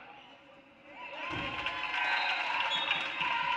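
A small crowd cheers and shouts in an echoing gym.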